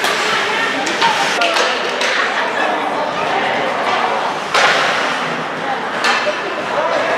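Ice hockey skates scrape and carve on ice in an echoing rink.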